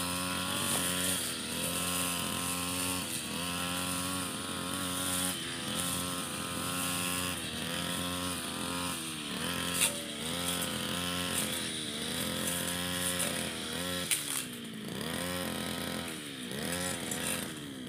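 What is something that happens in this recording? A petrol string trimmer engine drones and revs up and down.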